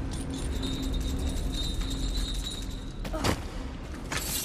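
A metal chain rattles and clanks.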